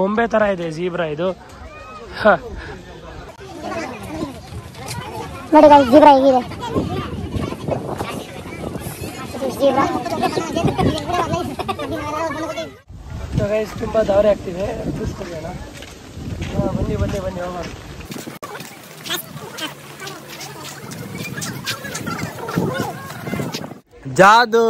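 Young men talk and chatter close by, outdoors.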